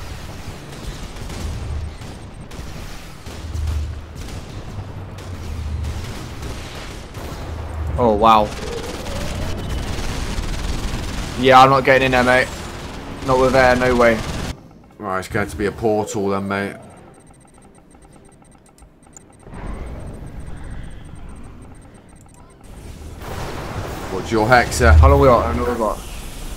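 Explosions rumble in low bursts.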